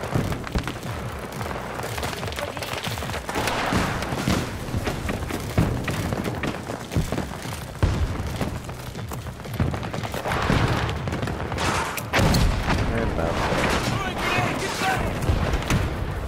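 Footsteps run over hard ground.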